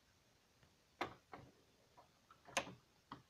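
A door knob rattles and clicks.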